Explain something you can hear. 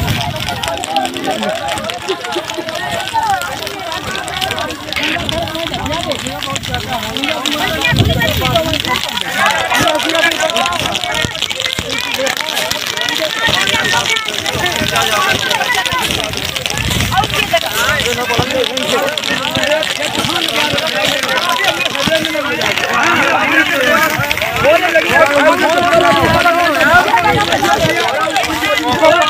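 Flames crackle as dry crops burn.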